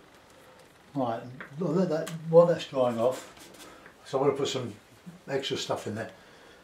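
An older man talks calmly, close to the microphone.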